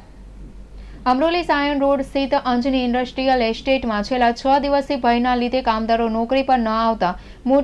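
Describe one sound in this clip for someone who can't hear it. A young woman reads out the news calmly through a microphone.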